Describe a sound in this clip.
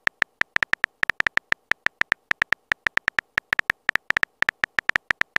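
Quick keyboard taps click in an uneven rhythm.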